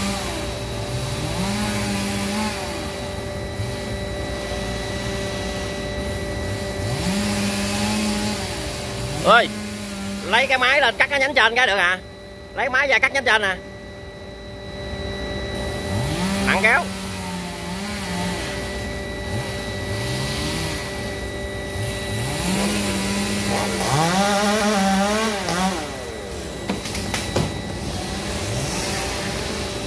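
A chainsaw revs up and down high in a tree.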